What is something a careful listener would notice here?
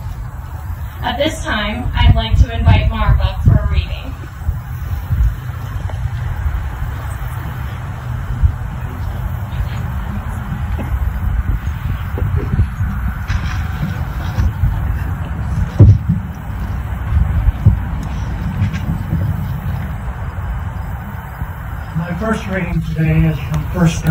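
Wind rumbles across the open air.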